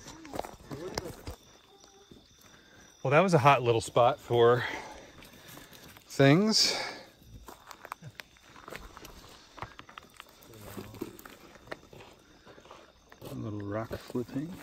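Footsteps rustle through dry leaves and grass.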